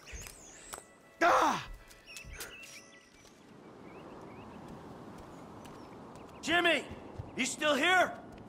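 Footsteps run across hard paving.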